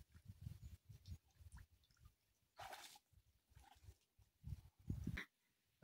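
Water splashes and sloshes as a man wades through a shallow pond.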